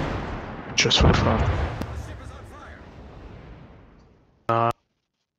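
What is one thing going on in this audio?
Heavy guns fire in loud booming blasts that rumble and fade.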